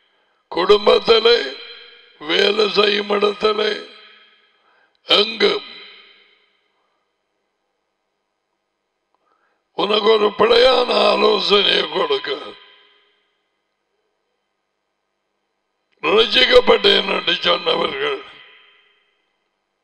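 An older man speaks calmly and clearly into a close headset microphone, in short bursts with long pauses.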